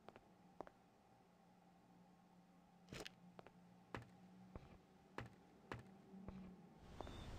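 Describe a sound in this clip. Footsteps thud on a wooden floor at a steady walking pace.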